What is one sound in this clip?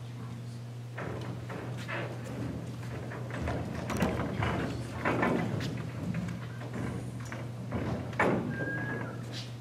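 Footsteps thud across a wooden stage.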